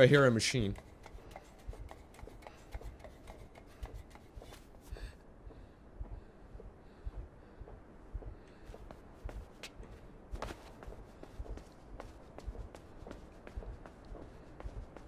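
Footsteps patter steadily on a hard floor.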